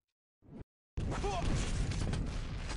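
A rocket explosion booms nearby.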